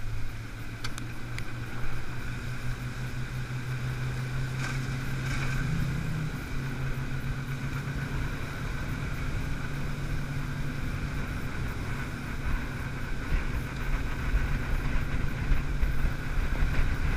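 Wind rumbles against the microphone.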